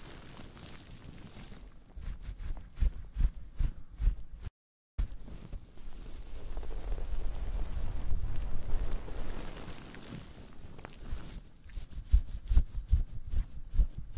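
Fingers squeeze and crinkle a soft, crunchy food close to a microphone.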